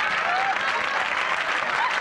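An elderly woman laughs loudly.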